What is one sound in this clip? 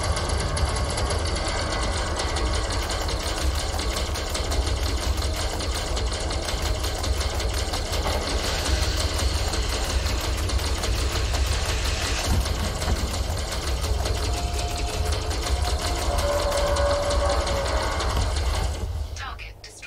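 A vehicle's engine rumbles low and steady, then cuts off.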